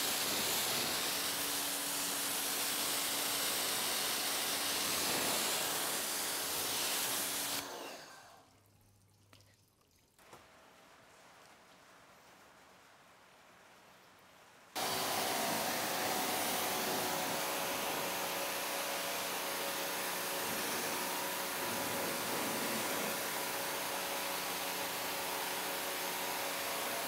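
A pressure washer sprays water hard onto a car, hissing loudly.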